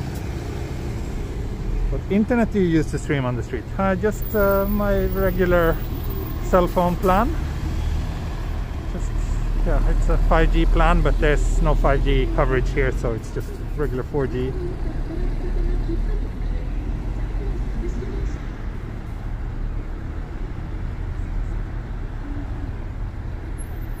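Cars drive past through the intersection.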